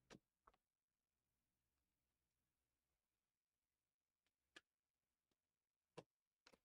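Cardboard boxes knock and tap against a table.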